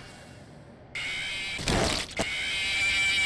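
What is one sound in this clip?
A short explosion bursts.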